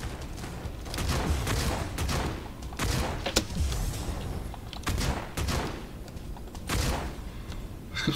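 Guns fire in rapid bursts with loud bangs.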